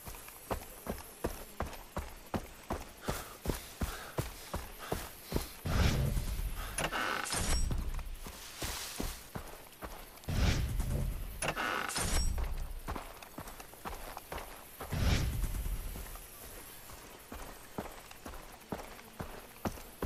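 Footsteps crunch steadily over grass and gravel.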